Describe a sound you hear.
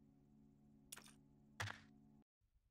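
A menu button clicks in a game.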